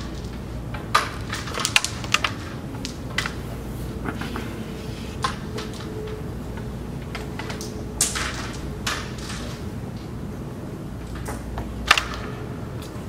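A flicked carrom striker clacks sharply against other wooden pieces on a board.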